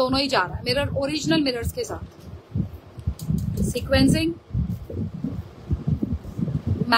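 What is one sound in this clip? Fingers rub and rustle against stiff fabric close by.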